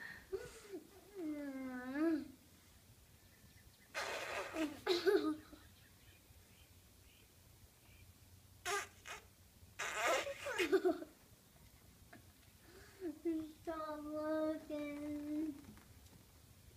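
A young girl blows a small toy noisemaker, making short bending pitched notes.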